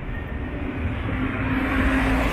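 A minibus drives past close by.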